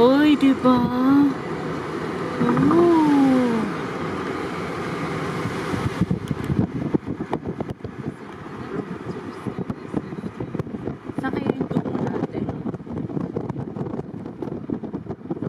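Wind rushes past an open car window.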